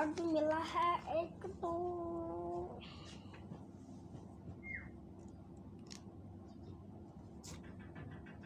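Paper rustles as a booklet is handled.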